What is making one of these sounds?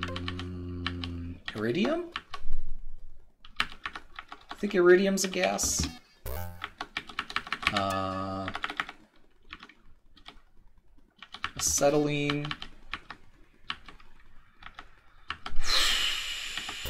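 Electronic game tones beep and warble in short bursts.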